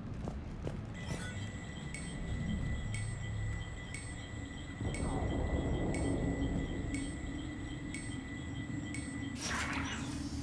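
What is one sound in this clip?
A device beeps and ticks in a steady rhythm.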